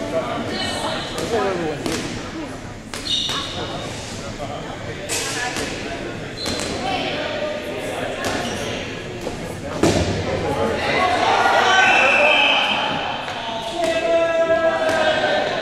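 Many young people shout and cheer in a large echoing gym.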